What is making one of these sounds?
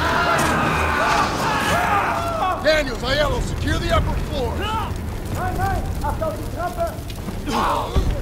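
Flames roar and crackle nearby.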